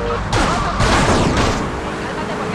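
A car crashes into another car with a loud thud.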